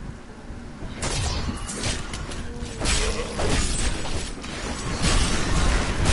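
Bursts of magic whoosh and crackle.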